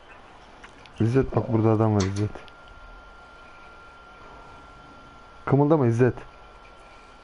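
A man speaks briefly into a microphone, up close.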